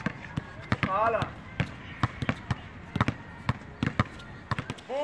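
Basketballs bounce repeatedly on an outdoor court.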